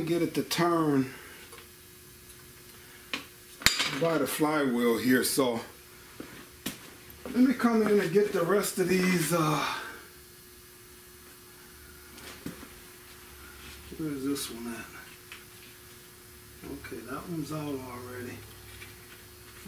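An elderly man talks calmly close by, explaining.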